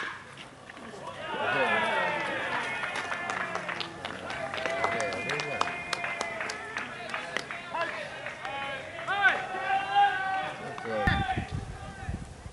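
Young men shout and cheer loudly from nearby.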